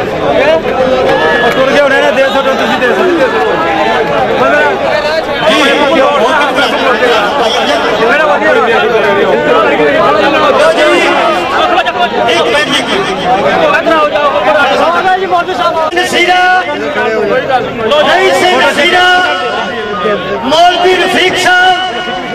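A crowd of men talk and call out together outdoors.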